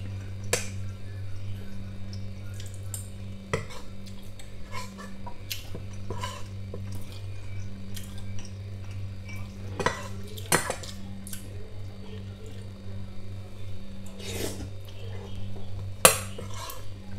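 A metal spoon clinks against a ceramic bowl.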